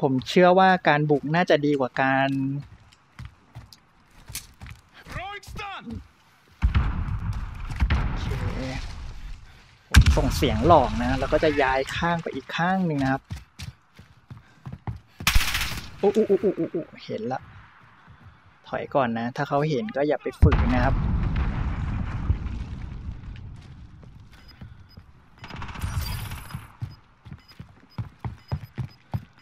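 Footsteps run over dirt and wooden boards.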